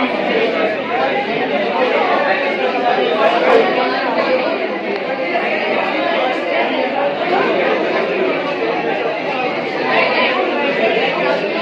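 A man explains with animation to a group close by.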